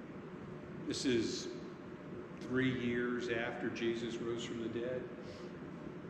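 A middle-aged man speaks calmly in a large echoing hall.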